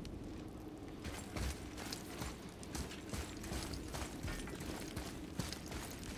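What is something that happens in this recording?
Heavy footsteps thud on a stone floor in a large echoing hall.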